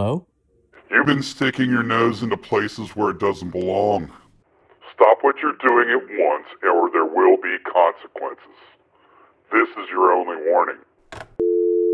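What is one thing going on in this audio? A man speaks calmly on a phone.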